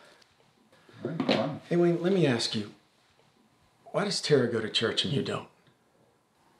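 A man speaks quietly and slowly, close by.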